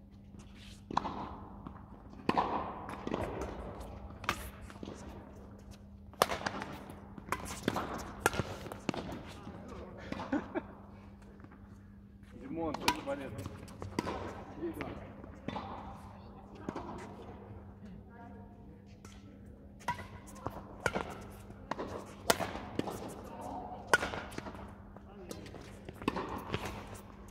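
Badminton rackets strike a shuttlecock back and forth with sharp pops in a large echoing hall.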